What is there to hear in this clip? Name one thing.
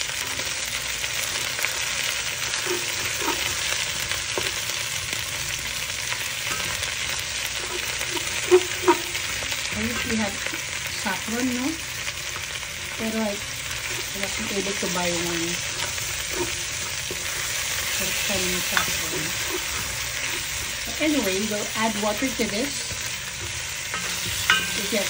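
Food sizzles steadily in a pot.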